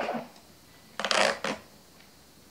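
Paper rustles as a label is torn off.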